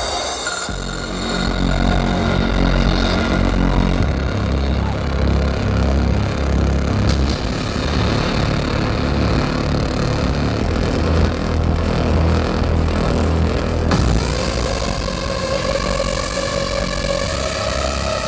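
Loud electronic dance music with a heavy thumping beat booms from loudspeakers.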